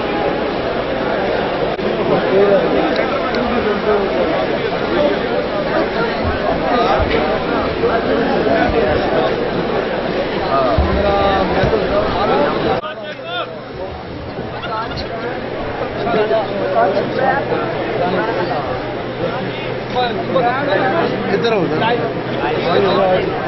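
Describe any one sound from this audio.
Many men talk and murmur at once close by.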